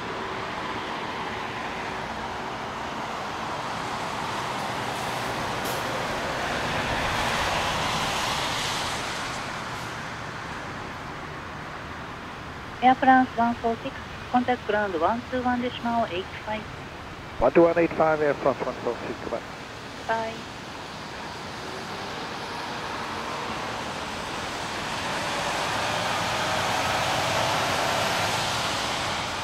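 A jet airliner's engines roar steadily as the plane taxis, with the noise swelling and easing.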